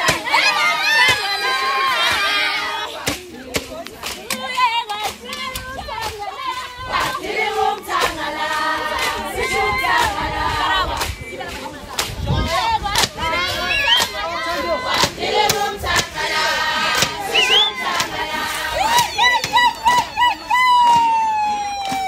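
Young women ulate in high trilling cries.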